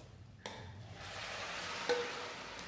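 Liquid pours into a pan with a hiss.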